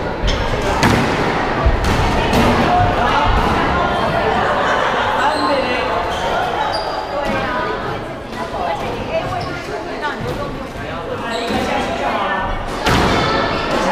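A squash ball smacks sharply against the walls in an echoing court.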